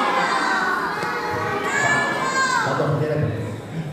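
A man speaks animatedly to a group of children in an echoing hall.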